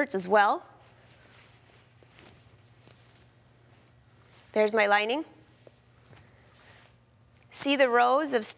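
Fabric rustles as it is handled and smoothed.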